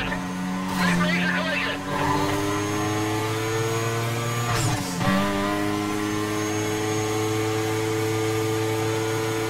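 A racing car engine roars at high revs, climbing through the gears.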